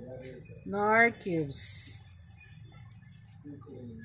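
A plastic packet crinkles as it is torn open.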